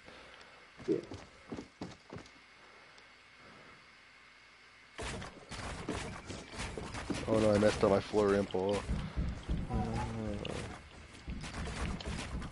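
Wooden building pieces snap into place with quick knocks.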